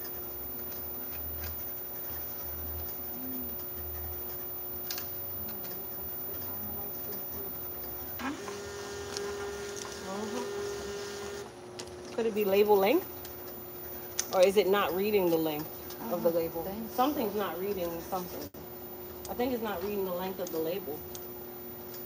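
A labeling machine hums steadily.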